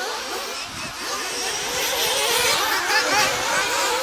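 Small electric model cars whine as they race around a track.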